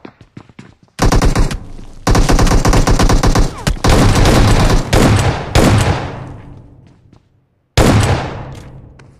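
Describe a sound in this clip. Rapid automatic gunfire bursts out loudly in short volleys.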